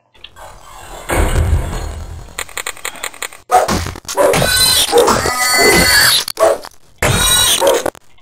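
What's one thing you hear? A large rat squeals and hisses.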